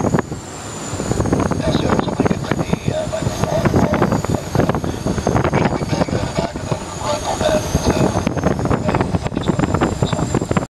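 Wind rushes and buffets hard against the plane in flight.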